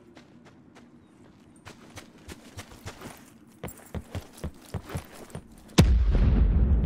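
Footsteps run quickly over grass and hard ground.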